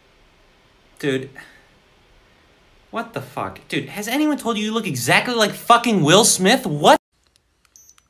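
A young man speaks close by with animation.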